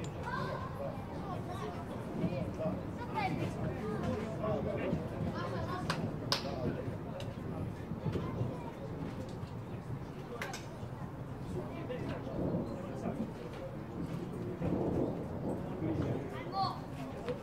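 Spectators chatter nearby outdoors.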